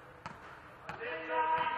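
A man shouts across the hall.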